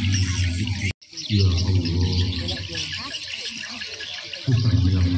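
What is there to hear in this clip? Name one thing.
A large crowd of children chatters and murmurs outdoors.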